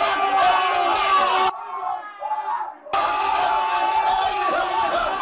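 Men scream loudly with excitement.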